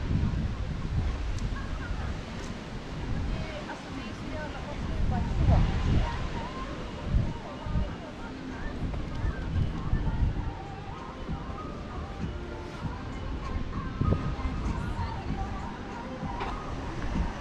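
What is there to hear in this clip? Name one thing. Wind buffets outdoors in gusts.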